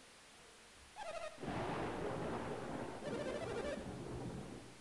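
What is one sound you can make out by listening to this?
Quick electronic blips chirp in short bursts.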